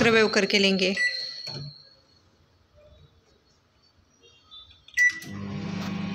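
A microwave button beeps.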